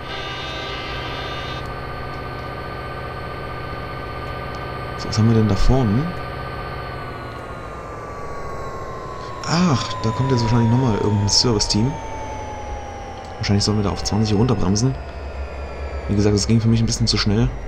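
Train wheels clatter along the rails.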